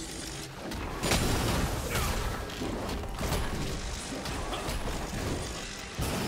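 Magic blasts and sword blows clash in a video game fight.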